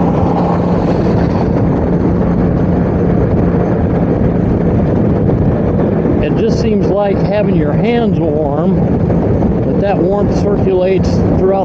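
Wind rushes loudly past a moving motorcycle.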